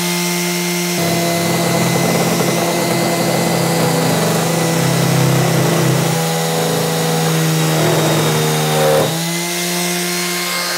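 A sander scrapes against a wooden board.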